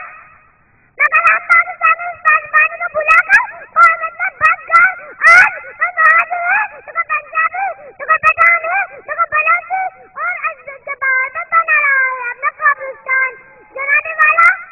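A young girl speaks clearly and with feeling through a microphone and loudspeakers.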